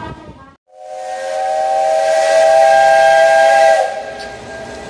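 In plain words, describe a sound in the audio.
A steam locomotive's whistle blows loudly and steadily.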